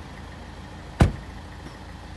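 A car door slams shut nearby.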